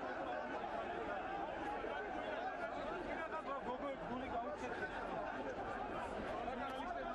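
A large crowd of men shouts and chants loudly close by.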